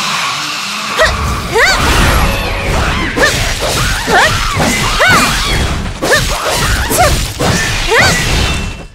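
Blades swoosh and clash in a fast fight.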